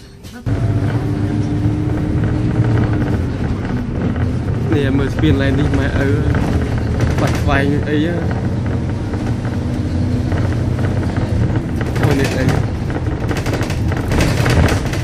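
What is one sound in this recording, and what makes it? A bus engine rumbles steadily from inside the moving bus.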